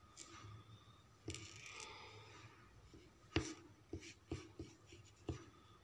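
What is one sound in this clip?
Fingertips tap small glass stones onto paper.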